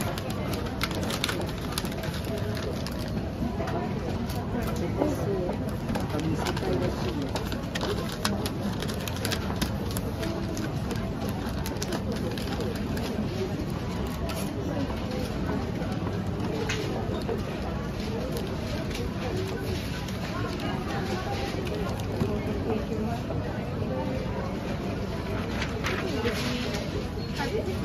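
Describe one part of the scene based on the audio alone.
Paper crinkles and rustles as a gift box is wrapped.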